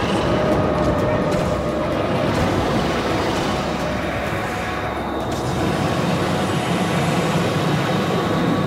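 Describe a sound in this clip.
A large creature swishes through deep water with a low rumble.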